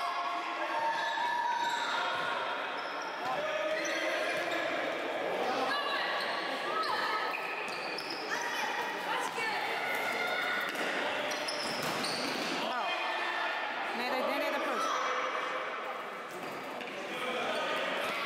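Young boys shout to each other across an echoing indoor hall.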